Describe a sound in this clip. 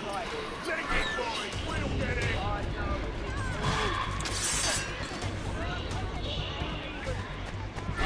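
Swords clash and clang in a scuffle.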